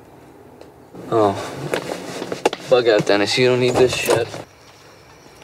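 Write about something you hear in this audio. A young man talks in a car.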